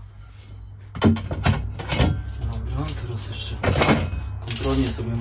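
A plastic strip knocks and scrapes against a metal van panel close by.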